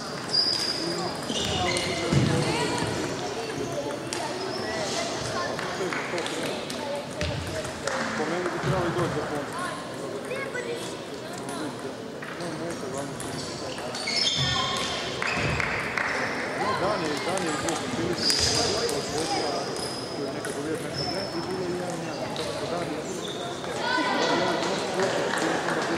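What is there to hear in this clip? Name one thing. Shoes squeak sharply on a hall floor.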